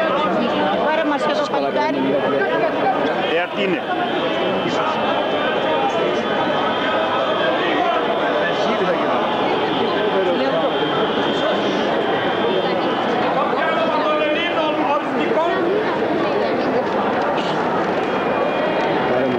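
A large crowd of men and women chants and murmurs together outdoors.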